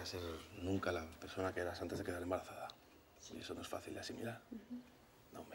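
A man speaks softly and emotionally up close.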